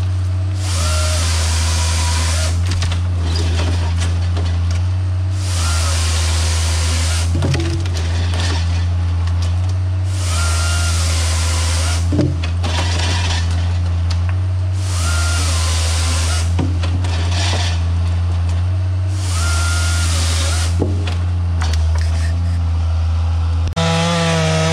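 A forestry machine's engine drones steadily and rises and falls as its crane works.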